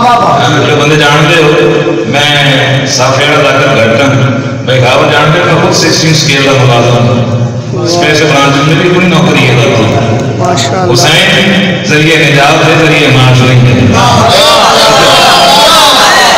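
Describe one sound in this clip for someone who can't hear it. A man speaks passionately into a microphone, heard through a loudspeaker in an echoing room.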